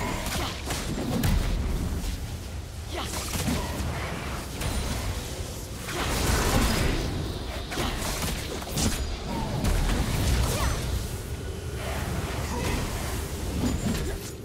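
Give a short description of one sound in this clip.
Magic spells whoosh and crackle in a busy fight.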